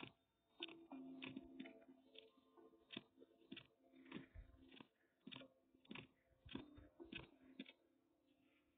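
Footsteps thud softly at a steady walking pace.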